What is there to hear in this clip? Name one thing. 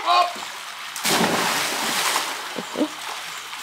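A child splashes into a pool.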